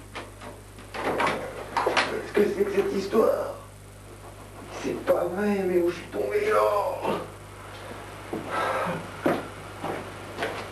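A man speaks nearby in a conversational voice.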